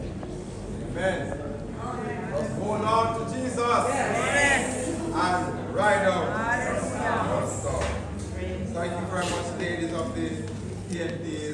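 A man speaks with animation through a loudspeaker in an echoing hall.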